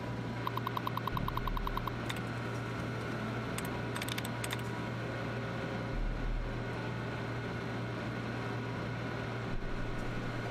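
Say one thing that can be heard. A computer terminal hums steadily.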